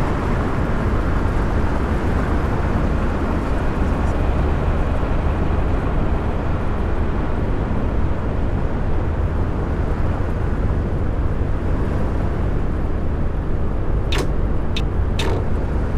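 Tyres roar on a highway.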